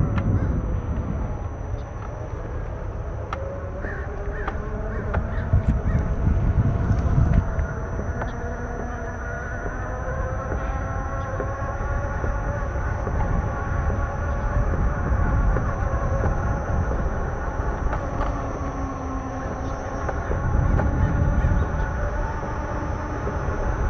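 An electric unicycle's motor whines steadily, rising and falling slightly in pitch.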